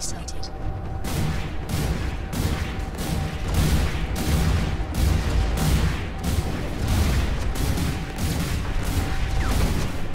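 Heavy guns fire in rapid repeated bursts.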